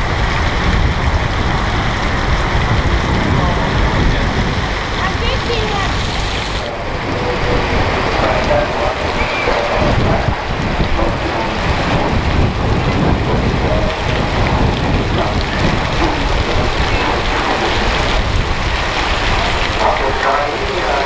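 Rain falls steadily on a metal roof overhead.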